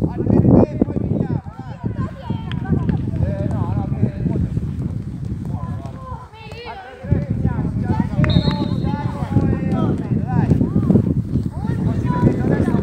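Boys' voices call out and chatter nearby outdoors.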